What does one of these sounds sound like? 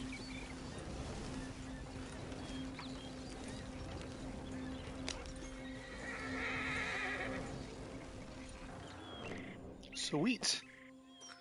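Wooden wagon wheels rumble and creak over rough ground.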